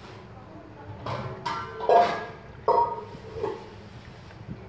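A plastic cup knocks and scrapes as it is picked up.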